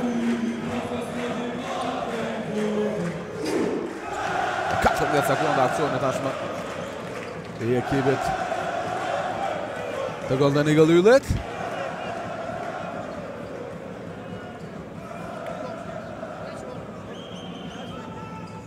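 A large crowd chants and cheers in an echoing hall.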